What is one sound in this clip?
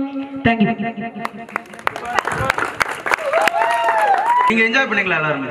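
A young man speaks into a microphone through a loudspeaker.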